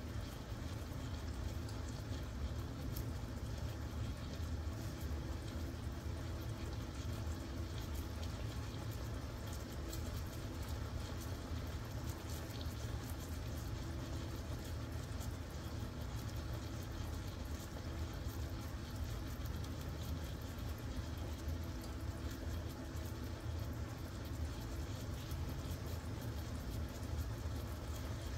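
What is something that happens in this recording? Meat simmers and sizzles steadily in a pan, with soft crackles and pops.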